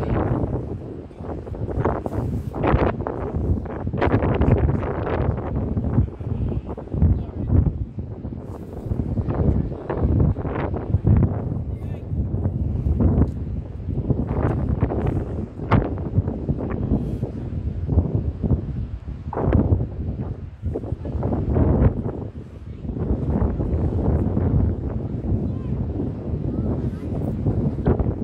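Strong wind buffets the microphone outdoors in gusts.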